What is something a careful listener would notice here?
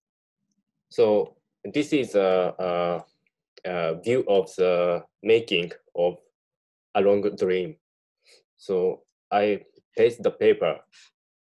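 A man talks calmly through an online call.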